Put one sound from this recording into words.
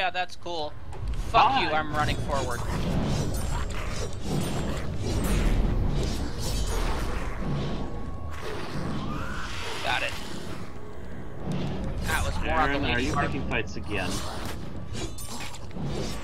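Magic blasts crackle and boom during a fight.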